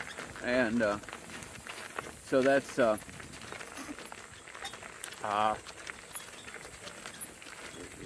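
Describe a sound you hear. Hooves clop steadily on a gravel road.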